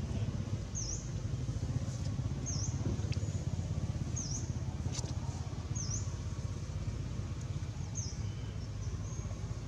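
Dry leaves rustle softly as small monkeys shuffle about.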